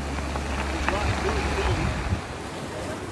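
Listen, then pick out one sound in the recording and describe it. Waves wash over rocks on a shore.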